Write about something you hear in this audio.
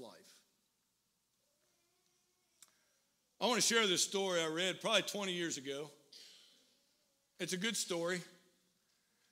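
An older man speaks with animation through a microphone in a reverberant hall.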